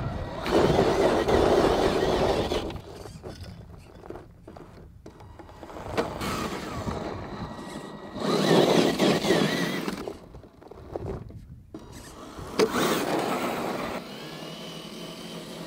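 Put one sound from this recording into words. A small electric motor whines as a toy truck climbs.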